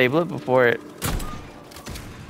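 A shotgun fires a single loud blast.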